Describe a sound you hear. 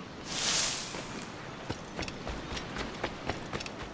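Footsteps thud quickly on the ground as someone runs.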